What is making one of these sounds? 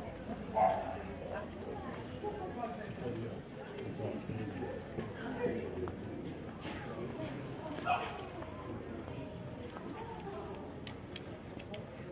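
Voices murmur in a street outdoors.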